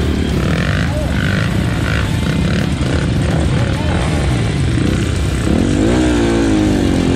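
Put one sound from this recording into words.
Dirt bike engines idle and rumble close by.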